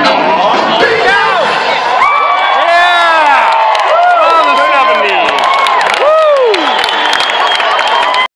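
A crowd cheers and whistles loudly.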